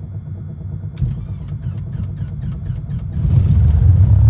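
An aircraft engine's starter whirs and cranks.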